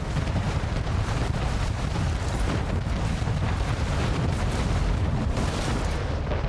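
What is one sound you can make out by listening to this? Cannons boom in rapid, overlapping volleys.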